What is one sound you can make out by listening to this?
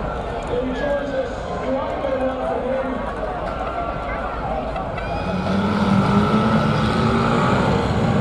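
Metal bodies crunch and bang as vans collide.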